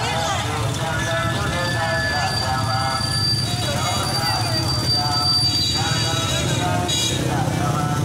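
A crowd of people shout and chatter outdoors.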